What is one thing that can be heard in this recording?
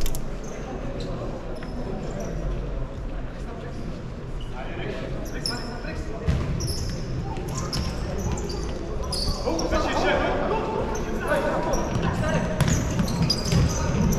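Shoes squeak sharply on a hard court floor in a large echoing hall.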